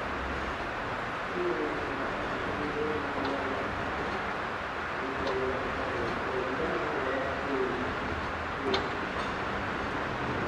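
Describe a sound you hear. A tram rumbles slowly along the rails towards the listener.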